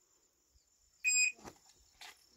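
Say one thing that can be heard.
A shot timer beeps once.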